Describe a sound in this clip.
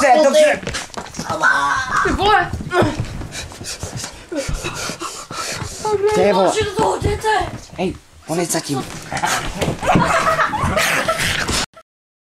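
A man talks excitedly, very close by.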